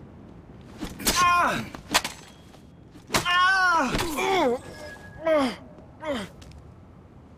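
Blades slash and strike in a close fight.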